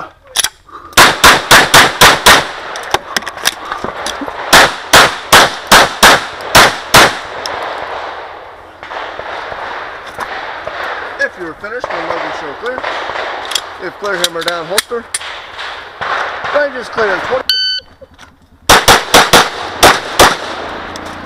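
A handgun fires rapid shots that ring out outdoors.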